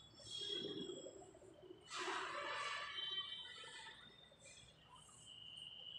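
Chalk scrapes and taps on a blackboard.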